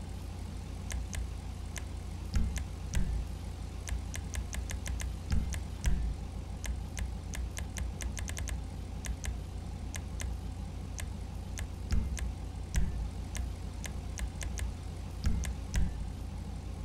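Short menu clicks tick in quick bursts.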